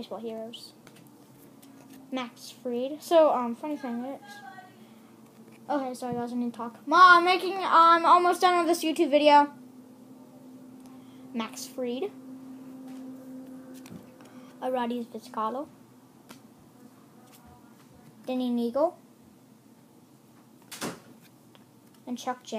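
A young child speaks close to a microphone, in an animated, high-pitched voice.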